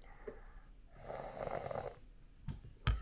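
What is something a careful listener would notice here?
A young girl slurps from a spoon.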